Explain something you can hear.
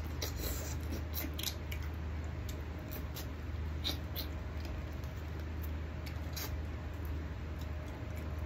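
A man chews and smacks his lips loudly, close up.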